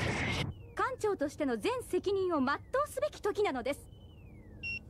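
A young woman speaks firmly and urgently.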